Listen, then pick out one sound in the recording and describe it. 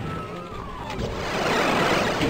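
A rocket explodes with a loud, rumbling blast.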